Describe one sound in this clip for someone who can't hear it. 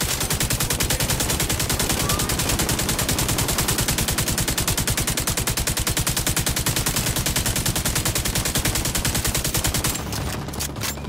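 An automatic rifle fires a rapid, steady stream of shots.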